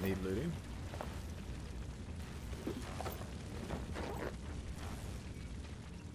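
A fire roars and crackles behind glass.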